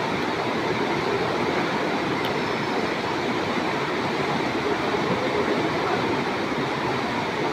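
A knife scrapes and pokes inside a hollow bamboo tube.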